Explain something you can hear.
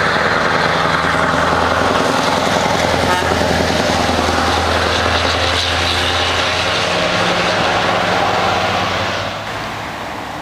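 A heavy truck roars past close by.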